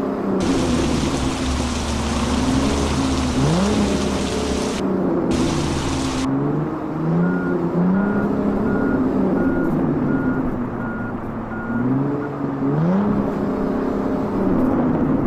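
A truck engine rumbles and its pitch rises and falls as it revs.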